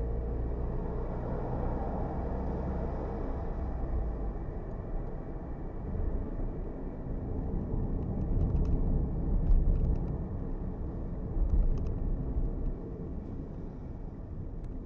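A car engine hums steadily as it drives along a road.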